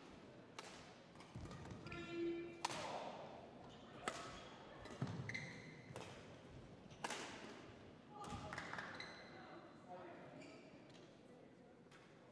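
A shuttlecock is struck sharply back and forth with rackets in a large echoing hall.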